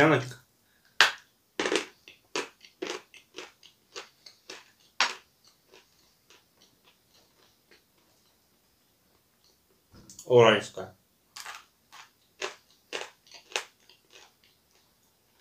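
A man bites and crunches on crisp food.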